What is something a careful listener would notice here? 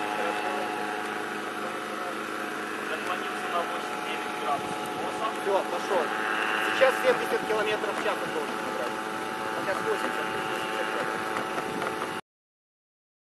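A small helicopter's engine drones steadily overhead.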